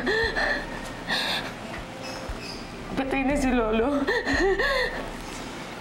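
A young woman sobs and speaks in a tearful, shaking voice up close.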